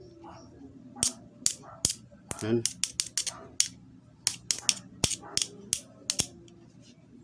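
Metal pliers click and tap sharply against metal parts.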